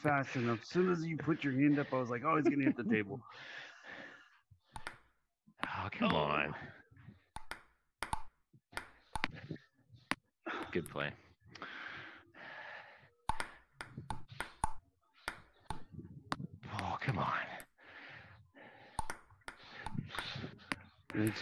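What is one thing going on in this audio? A ping pong ball clicks sharply against paddles and the table in a quick rally.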